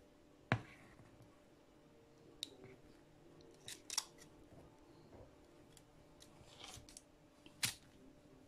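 A spatula spreads frosting on a cake, with soft scrapes and taps.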